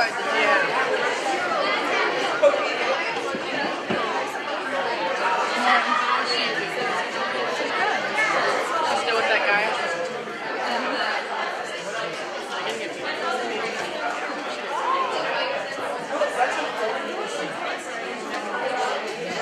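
A man speaks loudly to a group in an echoing room.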